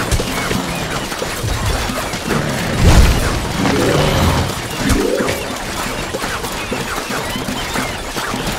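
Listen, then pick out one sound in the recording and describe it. Cartoonish shots pop and crackle rapidly in a busy game battle.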